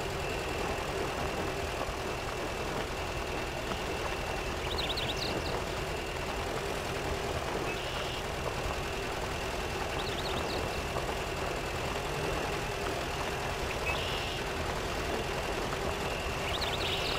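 An off-road vehicle's engine rumbles steadily as it crawls over rough ground.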